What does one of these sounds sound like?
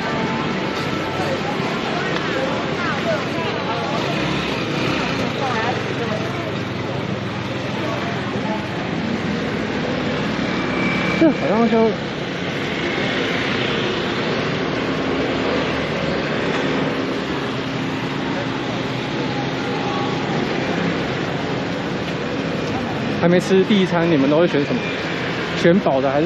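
A crowd murmurs on a busy street outdoors.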